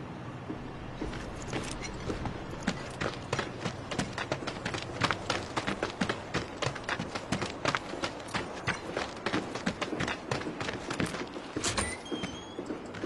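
Footsteps crunch quickly on gravel as a man runs.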